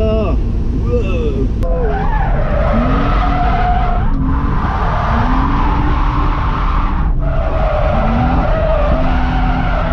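Tyres and wind rush steadily around a moving car.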